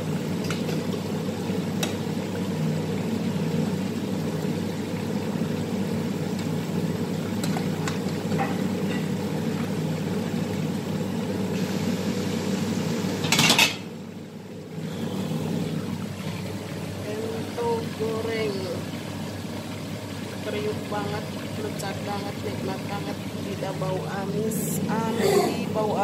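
Hot oil sizzles and crackles steadily in a frying pan.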